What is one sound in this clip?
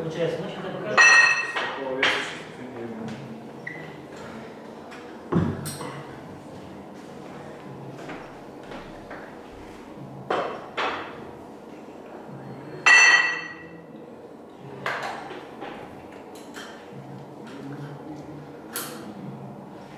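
Metal weight plates clank and knock on the floor.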